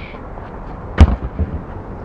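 A football is kicked hard with a single thud.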